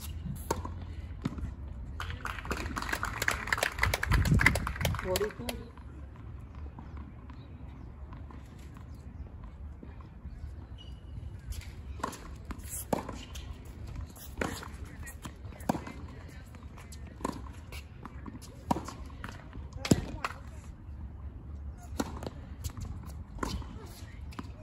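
Tennis balls are struck back and forth with sharp pops outdoors.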